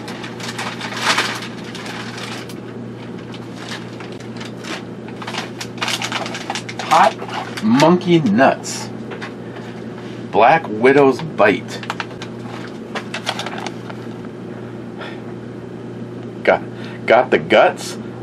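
A plastic snack bag crinkles and rustles in a man's hands.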